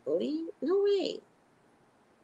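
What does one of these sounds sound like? A middle-aged woman speaks briefly and expressively, close to a microphone.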